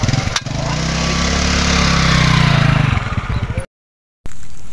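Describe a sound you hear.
A scooter engine idles with a low hum.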